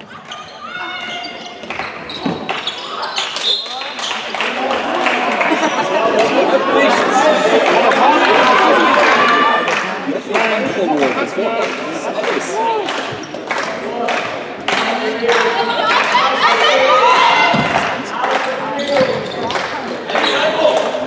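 Spectators shout and cheer loudly in an echoing indoor hall.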